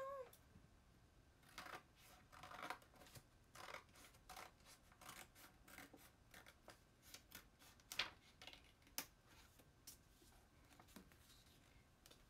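Cloth rustles close by.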